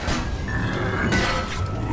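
A spinning saw blade grinds and whirs loudly.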